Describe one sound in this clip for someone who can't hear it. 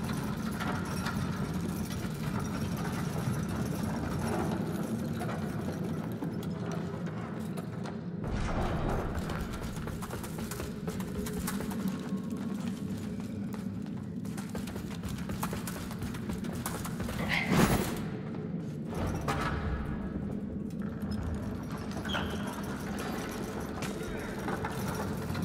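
A wooden lift creaks and rumbles as it moves.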